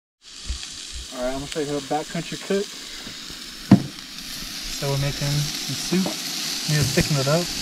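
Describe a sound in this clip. A young man talks calmly and cheerfully close by.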